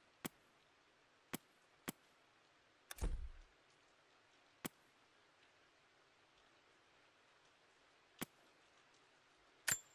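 Short soft menu clicks sound now and then.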